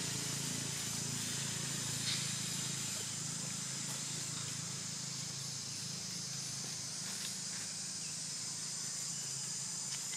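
Dry leaves rustle as a small monkey moves.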